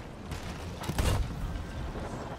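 A loud explosion bursts and crackles.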